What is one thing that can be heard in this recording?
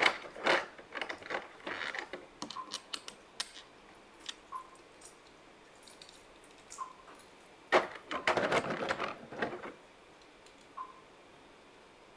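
Plastic parts of a toy click and snap as hands move them.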